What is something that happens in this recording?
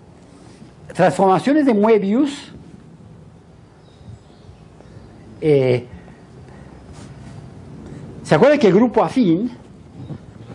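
A man lectures in short bursts, heard through a microphone in an echoing room.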